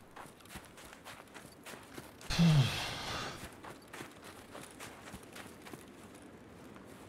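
Footsteps crunch steadily through snow.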